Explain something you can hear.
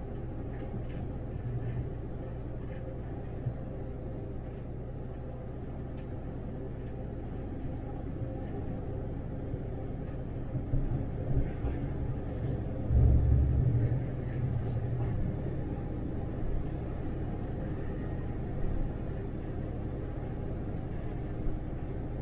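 An articulated city bus cruises on an open road, heard from the driver's seat.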